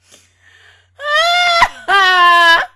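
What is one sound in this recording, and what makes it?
A young woman sings loudly and openly into a close microphone.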